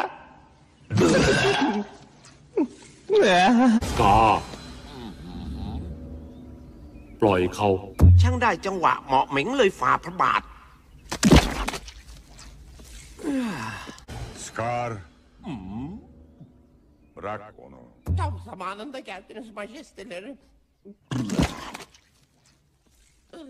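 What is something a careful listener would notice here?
A man squawks and cries out in a high, comic voice.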